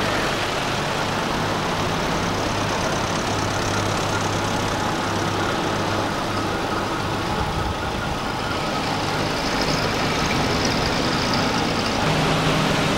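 Old jeep engines rumble as they drive past one after another.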